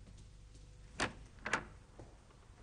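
A door opens with a sharp knock and clatter.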